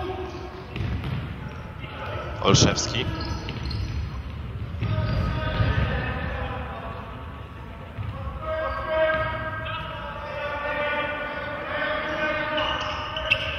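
Players' shoes squeak and thud on a wooden floor in an echoing hall.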